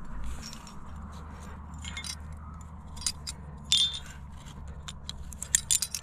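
A rope rustles as it is pulled through a carabiner.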